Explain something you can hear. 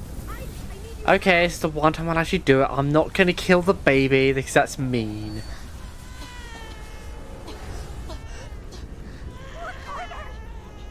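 A woman cries out in panic.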